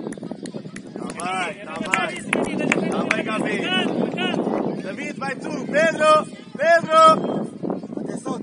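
Young players shout to each other across an open pitch.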